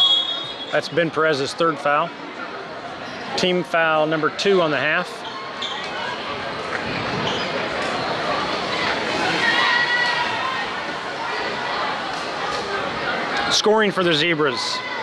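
A group of young women chant a cheer loudly in a large echoing gym.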